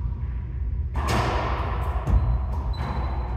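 A man shouts briefly in an echoing room.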